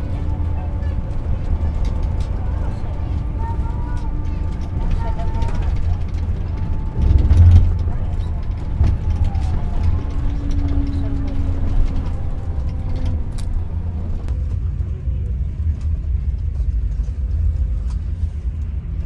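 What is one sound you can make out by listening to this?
A bus engine rumbles steadily from inside the cabin.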